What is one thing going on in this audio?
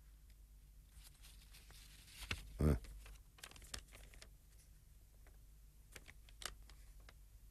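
Soft rustling and knocks come as boys shift on the floor.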